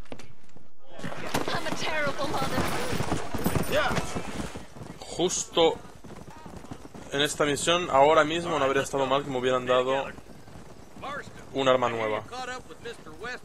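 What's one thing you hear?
Horses gallop with hooves clattering on a dirt road.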